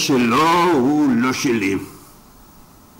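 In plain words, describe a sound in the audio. A man speaks with feeling, close by.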